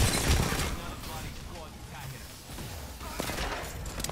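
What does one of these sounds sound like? A metal door slides open.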